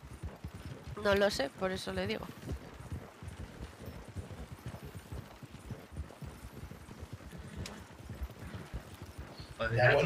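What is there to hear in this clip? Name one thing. Wooden carriage wheels rumble and creak over the ground.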